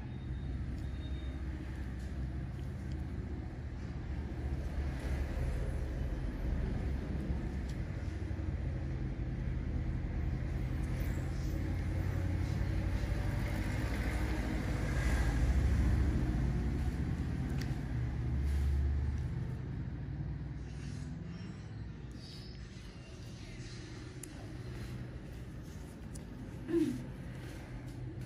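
Gloved fingers rub and squeeze against skin close by.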